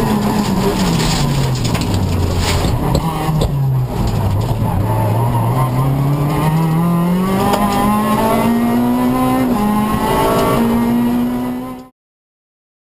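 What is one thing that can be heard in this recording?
A car engine roars loudly, revving up and down through the gears.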